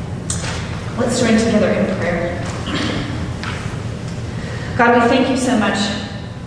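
A woman speaks through a microphone, echoing in a large hall.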